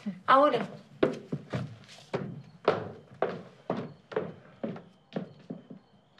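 Footsteps walk away across a hard floor.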